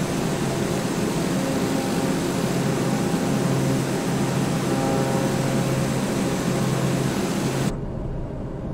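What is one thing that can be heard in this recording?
A single-engine turboprop drones in flight.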